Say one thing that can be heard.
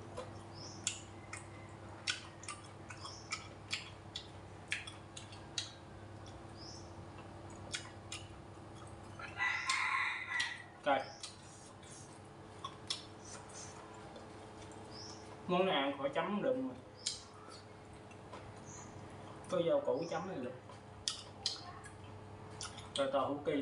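Chopsticks click against a bowl and plates.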